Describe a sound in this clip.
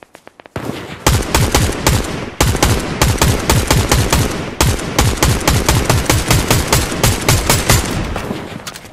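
A rifle fires rapid bursts of shots.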